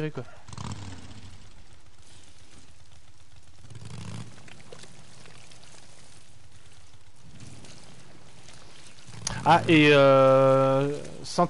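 A young man speaks quietly into a headset microphone, in short bursts.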